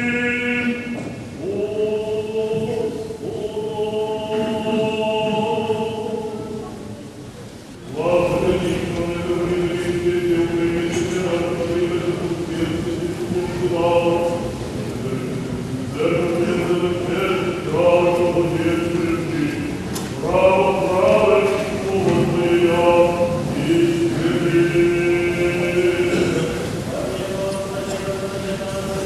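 Men sing a slow chant together in a large echoing hall.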